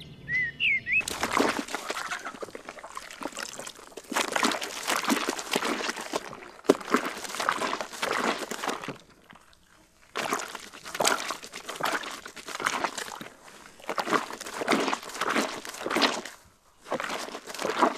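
Wet cloth sloshes and squelches in a tub of soapy water.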